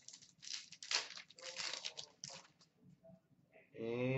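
A plastic wrapper crinkles as hands handle it.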